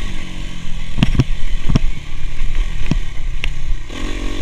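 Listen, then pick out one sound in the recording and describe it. A dirt bike's suspension thuds over bumps.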